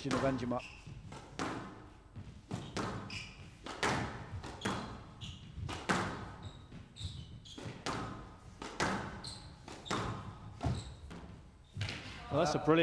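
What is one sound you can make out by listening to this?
A squash ball smacks sharply against the walls and rackets in a quick rally.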